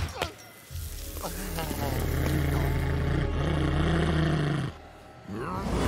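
A cartoon dog growls low.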